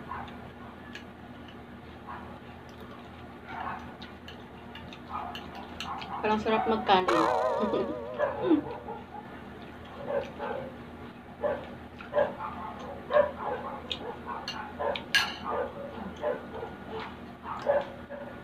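A young woman chews food with her mouth open, close to a microphone.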